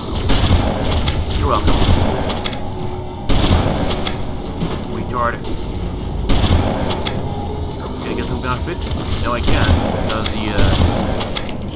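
A shotgun fires with loud booms.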